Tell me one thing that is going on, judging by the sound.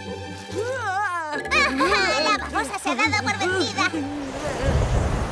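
A young woman speaks with animation in a high, squeaky cartoon voice.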